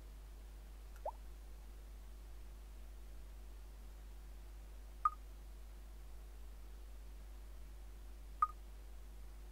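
Short menu blips sound now and then.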